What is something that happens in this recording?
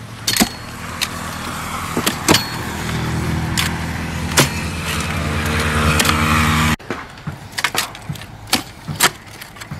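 A post-hole digger thuds and scrapes into dry soil.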